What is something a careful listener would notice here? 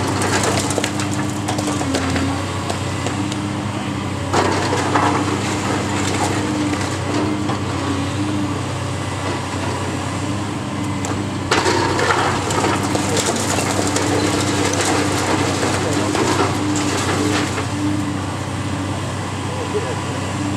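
A heavy excavator engine drones steadily.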